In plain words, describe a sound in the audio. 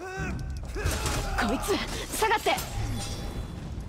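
Weapon blows land with sharp hits during a fight.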